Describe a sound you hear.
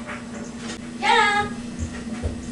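A young woman shouts loudly.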